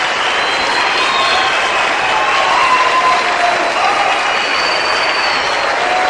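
An audience claps along.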